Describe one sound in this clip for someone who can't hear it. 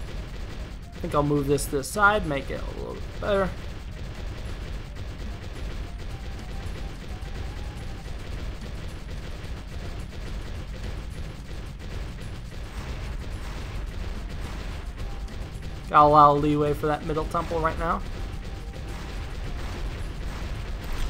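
Cartoon explosions and pops crackle steadily in a video game.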